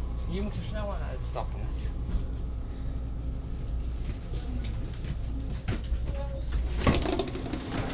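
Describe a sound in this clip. A train hums steadily with a low rumble.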